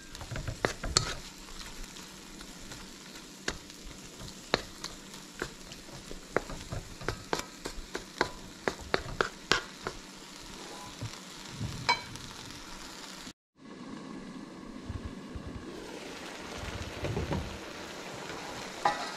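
Sauce simmers and bubbles gently in a pan.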